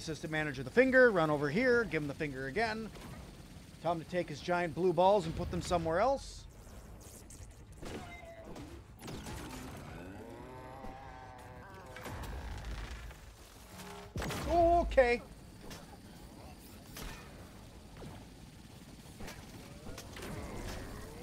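Game weapons fire with sharp electronic zaps.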